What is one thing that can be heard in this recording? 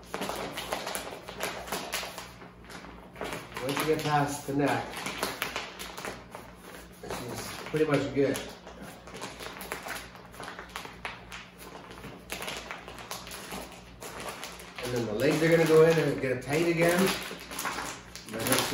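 Fur rustles and flaps as it is shaken.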